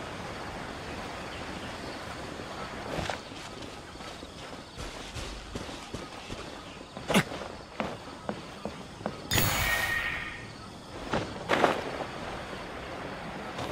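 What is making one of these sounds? Wings whoosh open for a glide.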